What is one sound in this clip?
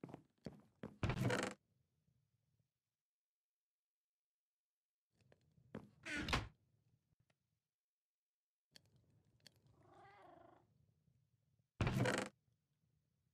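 A wooden chest creaks open and shut.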